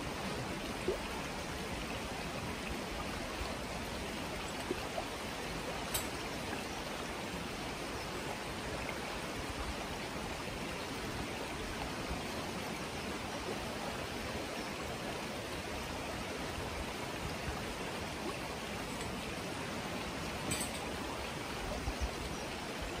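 Fast-flowing floodwater rushes and gurgles outdoors.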